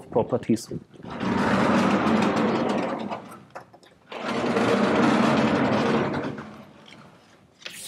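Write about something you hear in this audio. Large blackboards slide up and down with a rumbling scrape.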